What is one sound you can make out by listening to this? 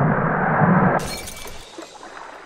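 Water splashes and bubbles.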